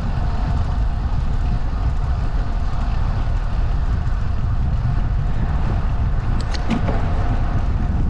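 Wind buffets steadily while moving outdoors.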